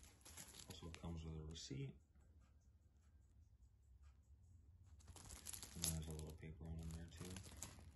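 A plastic sleeve crinkles in hands.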